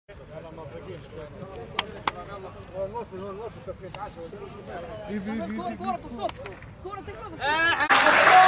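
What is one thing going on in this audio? Several young men talk and call out to each other nearby, outdoors.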